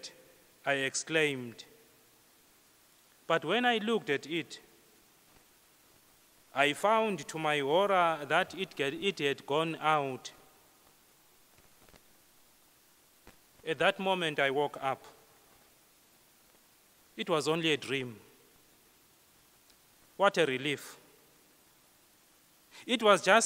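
A man speaks slowly and clearly into a microphone, in short phrases with pauses, in a room with a slight echo.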